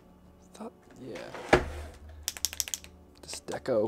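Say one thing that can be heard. Marker pens clatter together in a hand.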